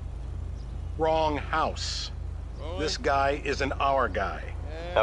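A man speaks calmly from close by.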